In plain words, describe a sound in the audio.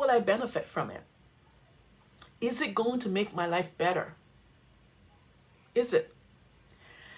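A woman speaks with animation close to a microphone, in short bursts with pauses.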